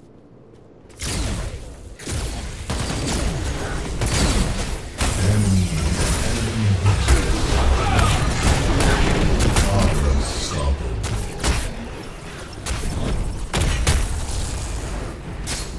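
Magic blasts and impacts crackle and boom in a game battle.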